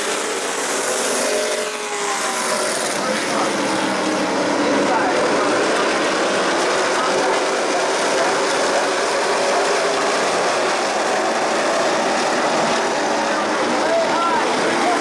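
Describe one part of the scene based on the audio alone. A large crowd cheers in the open air.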